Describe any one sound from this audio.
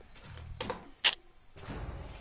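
A sharp whoosh sounds as a card flips over.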